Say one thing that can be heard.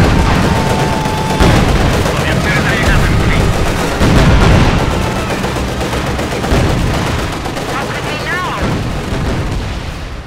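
Explosions boom and rumble repeatedly.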